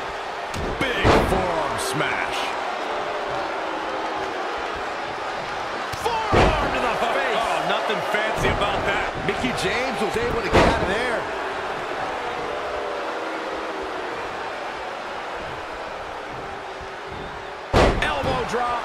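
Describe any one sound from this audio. Bodies slam hard onto a wrestling mat with loud thuds.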